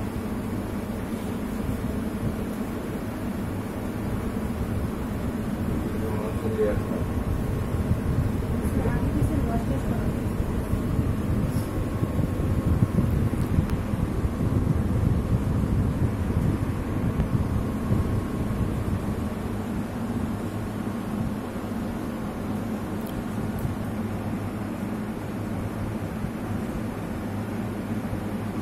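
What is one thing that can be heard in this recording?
A woman murmurs quietly nearby.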